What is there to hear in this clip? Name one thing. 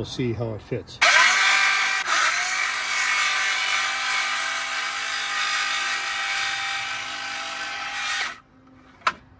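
A cordless saw whines loudly as it cuts through wood.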